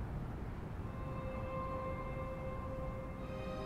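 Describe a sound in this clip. A car's door chime beeps steadily.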